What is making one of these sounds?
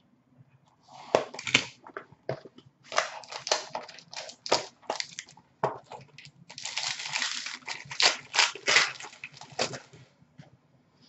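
Cards rustle and flick as they are handled.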